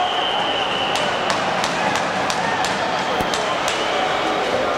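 Hockey sticks clack against the puck and the boards.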